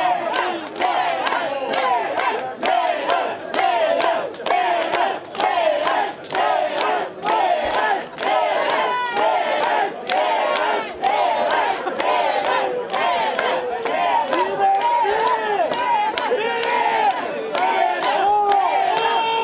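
A woman sings into a microphone with the band.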